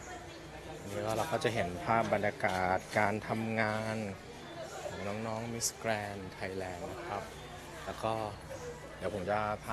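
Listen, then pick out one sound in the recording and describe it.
A young woman sings.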